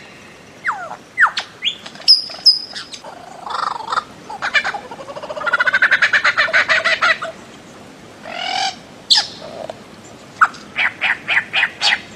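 A bird gives loud, harsh, rapid calls, with pauses between bursts.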